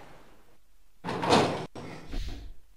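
Heavy metal doors slide open with a loud grinding rumble.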